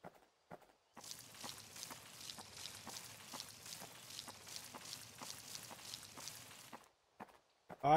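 Footsteps patter quickly and steadily over soft ground.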